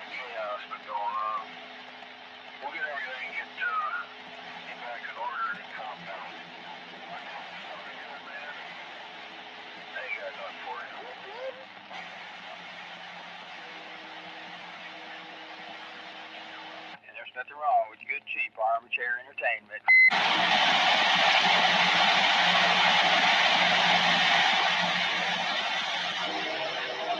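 A radio receiver hisses with static, loudly in the end.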